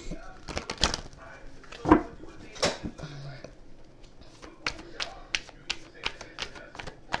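Paper cards rustle and flick as a hand shuffles through them close by.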